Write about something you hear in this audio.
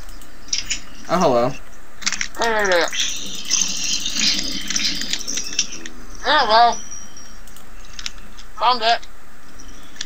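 Zombies groan and moan nearby.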